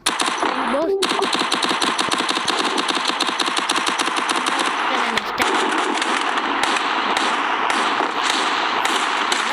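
Rapid gunfire rattles without pause.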